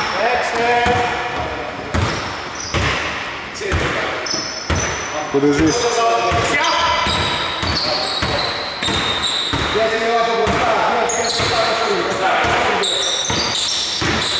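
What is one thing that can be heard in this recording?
A basketball bounces on a hard court floor with echoing thuds.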